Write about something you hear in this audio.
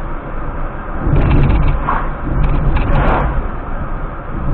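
A heavy truck passes close by in the other direction.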